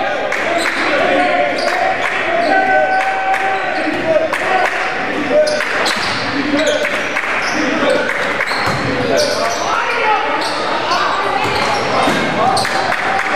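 A crowd murmurs and calls out in a large echoing gym.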